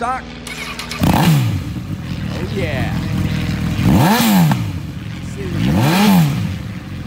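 A motorcycle engine revs sharply and drops back, again and again.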